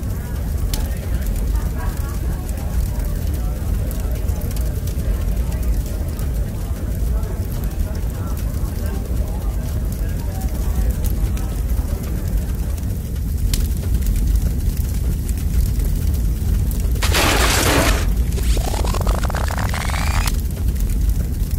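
Burning wood pops and snaps.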